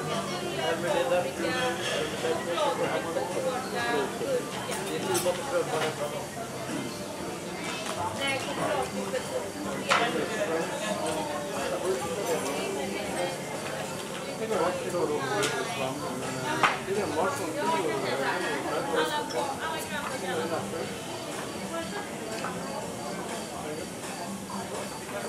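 A crowd of men and women chatter and talk nearby outdoors.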